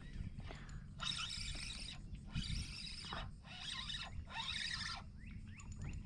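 A fishing reel whirs as the line is wound in.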